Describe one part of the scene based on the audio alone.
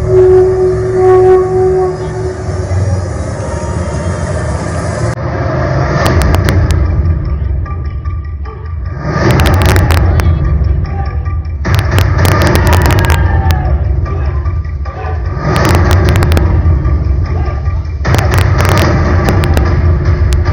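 Loud music plays over loudspeakers in a large open-air venue.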